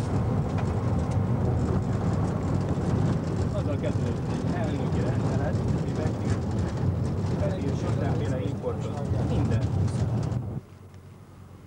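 Tyres rumble on a road.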